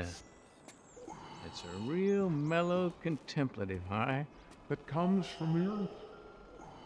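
A middle-aged man talks calmly.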